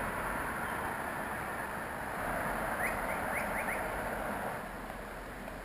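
A car drives along a road with tyres humming.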